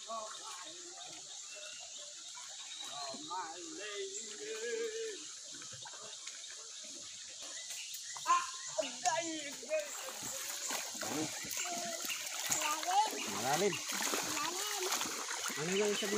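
A stream of water flows and babbles softly.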